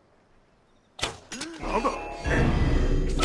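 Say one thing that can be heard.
An arrow is released with a sharp twang.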